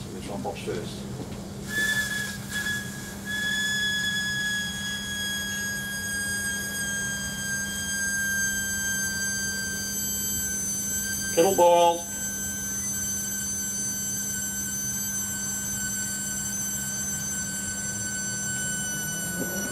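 An electrical device hums steadily with a low buzz.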